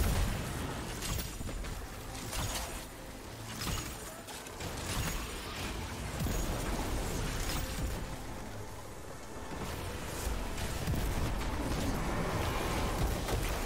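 Gunshots and energy blasts fire rapidly.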